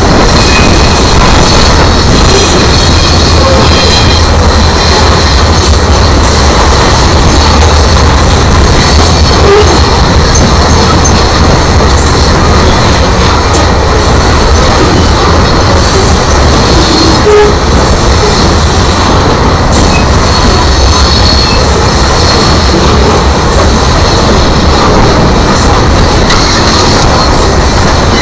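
Freight cars rumble and clatter loudly past on the rails, close by.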